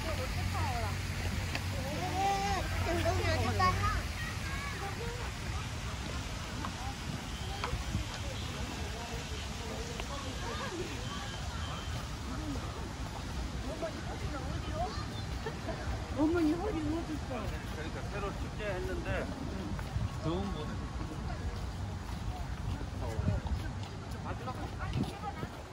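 Footsteps tread on a path.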